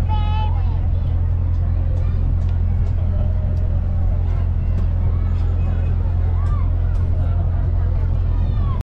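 A boat engine rumbles steadily and low.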